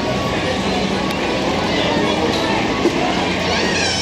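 A crowd of people chatters in the distance outdoors.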